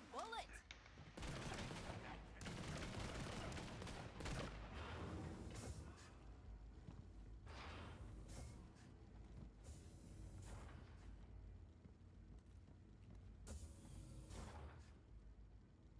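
A fiery gun roars and crackles in bursts.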